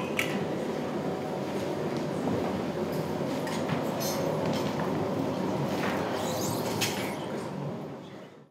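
People shuffle and rustle on a wooden floor.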